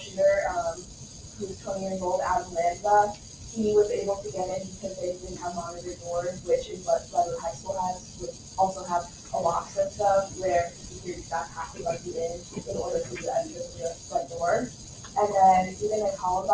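A man speaks steadily from across a room.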